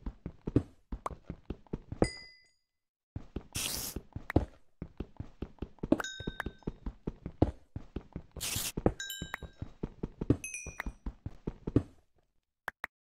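A pickaxe taps rapidly against stone.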